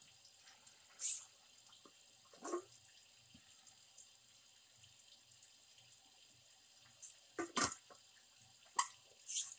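A plastic bottle cap clicks and scrapes as it is twisted.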